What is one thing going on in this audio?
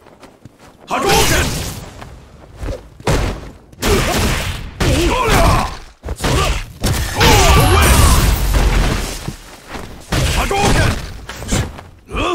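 Punches and kicks land with sharp smacking hits.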